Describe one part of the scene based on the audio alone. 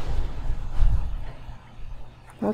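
A fire burns with a low roar.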